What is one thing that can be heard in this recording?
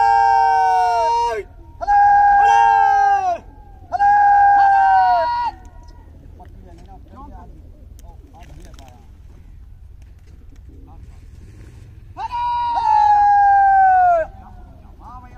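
A man calls out loudly in long, drawn-out cries outdoors.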